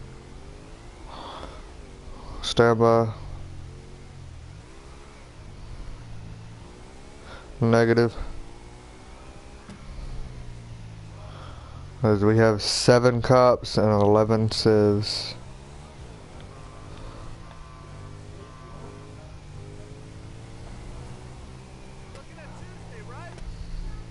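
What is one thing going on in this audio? A motorcycle engine hums steadily and rises and falls in pitch as it rides.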